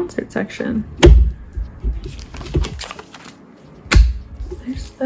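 A binder page thumps softly against the rings.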